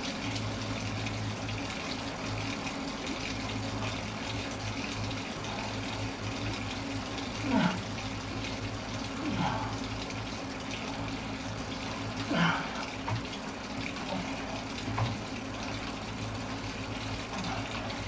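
An indoor bike trainer whirs steadily as a man pedals.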